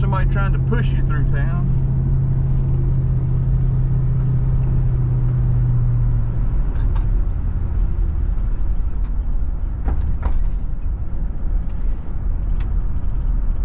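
Tyres roll on smooth pavement with a low rumble.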